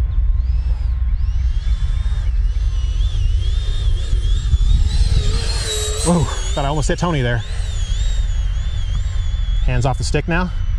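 A small jet engine whines high and loud as it flies close past and climbs away.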